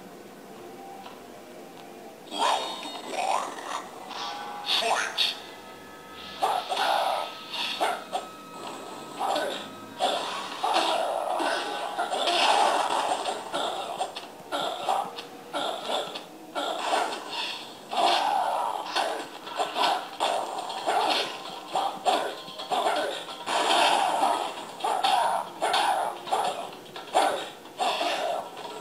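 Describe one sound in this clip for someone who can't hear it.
Game music plays from a small loudspeaker.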